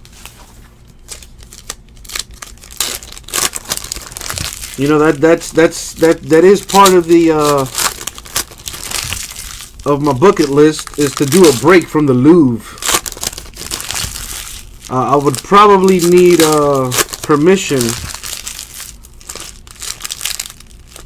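Foil wrappers crinkle and rustle as packs are torn open.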